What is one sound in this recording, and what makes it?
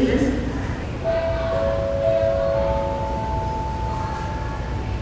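A chime of rising tones rings out over loudspeakers in a large echoing hall.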